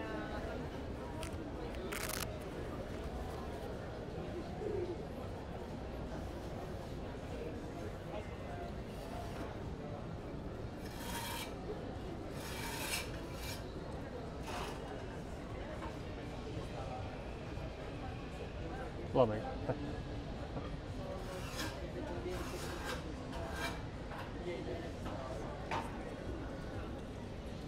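A steady outdoor city murmur fills the air.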